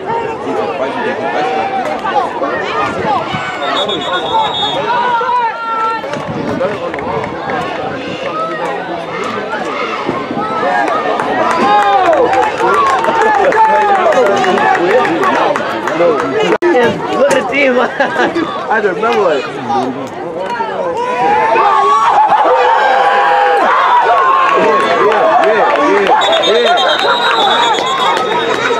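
A crowd of spectators cheers and shouts nearby outdoors.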